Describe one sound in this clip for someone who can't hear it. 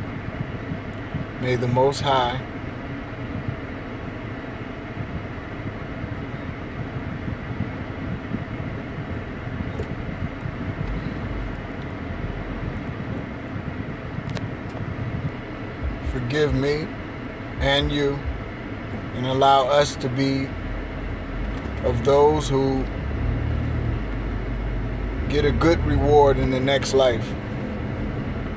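A car engine hums low and steadily inside the car.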